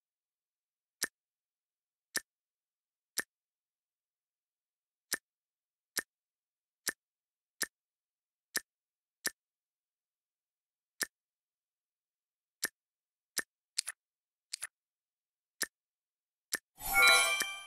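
Short interface clicks sound as buttons are tapped.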